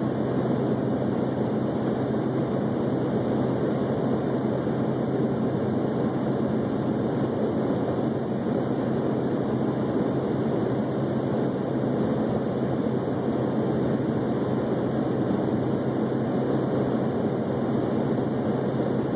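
A car drives along an asphalt highway, heard from inside, with a steady rumble of tyres and engine.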